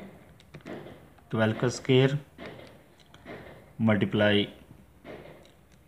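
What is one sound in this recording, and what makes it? Calculator buttons click as they are pressed.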